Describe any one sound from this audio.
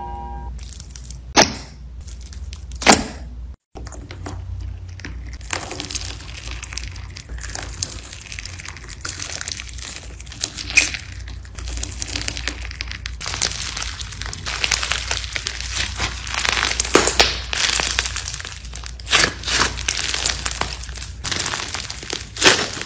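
Slime squelches wetly as fingers knead it.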